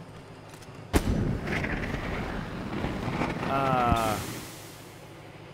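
A flamethrower roars out a burst of fire.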